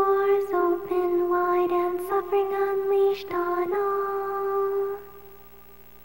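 A bright chiming melody plays.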